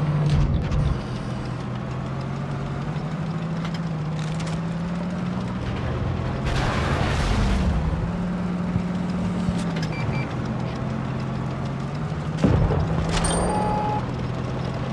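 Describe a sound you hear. A tank engine rumbles and drones steadily.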